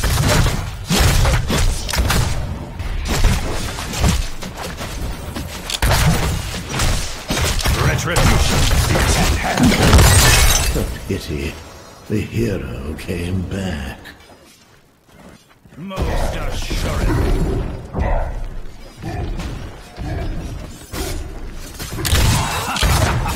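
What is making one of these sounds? Video game combat effects clash and burst.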